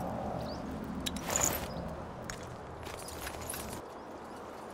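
Sharp clashing hits ring out in a brief fight.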